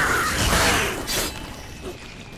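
A sword whooshes through the air.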